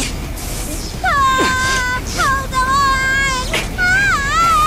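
A young girl screams shrilly close by.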